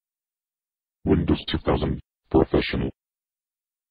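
A computer plays a short startup chime.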